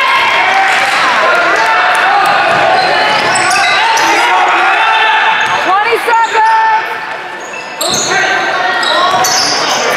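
A basketball bounces on the floor as a player dribbles.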